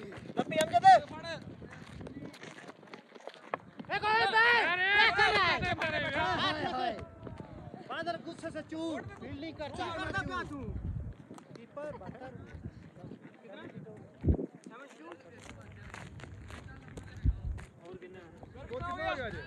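Young men shout and cheer excitedly outdoors.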